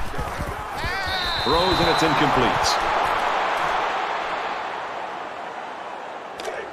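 A stadium crowd cheers and roars loudly, then dies down.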